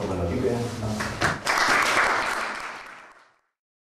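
Men applaud with a burst of clapping that fades out.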